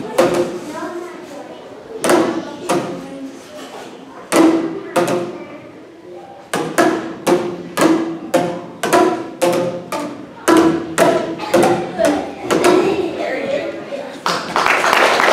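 Children strike pitched plastic tubes, playing short ringing notes in a rhythm.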